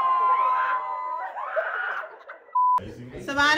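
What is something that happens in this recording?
A group of women and men laugh and shout excitedly.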